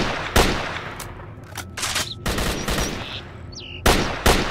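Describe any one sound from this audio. A rifle's magazine clicks and clacks during a reload.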